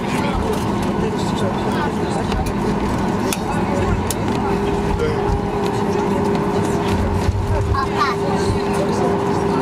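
Jet engines hum steadily as an airliner taxis.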